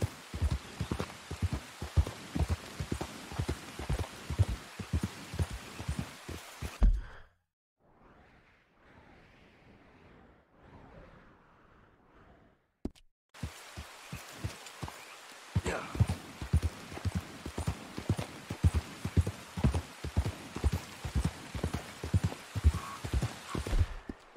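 A horse's hooves thud steadily on a dirt trail.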